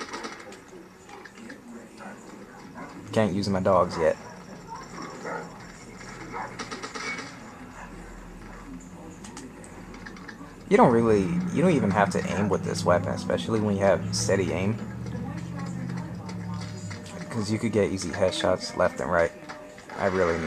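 Gunshots crack from a video game through a television speaker.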